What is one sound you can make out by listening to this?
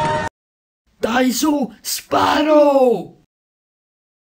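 A cartoon dog speaks in a high, playful voice.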